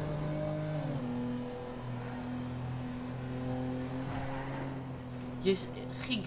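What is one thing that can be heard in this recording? A car engine hums steadily as it drives.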